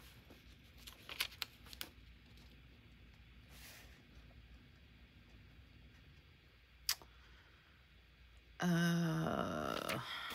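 A sticker peels slowly off its backing.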